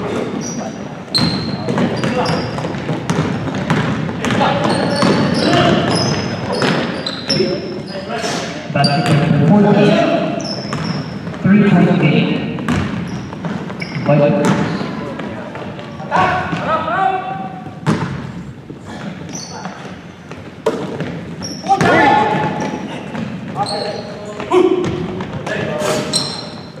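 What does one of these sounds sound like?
Young men call out to each other during play.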